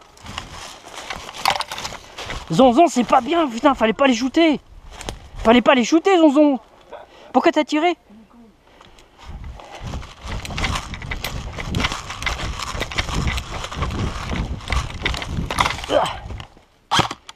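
Footsteps crunch through dry leaves as a person runs.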